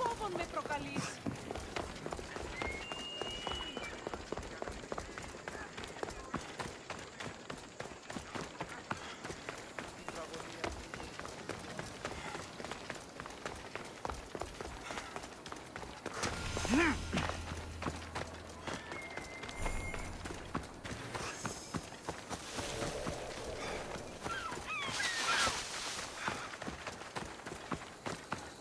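Quick footsteps run over stone and through grass.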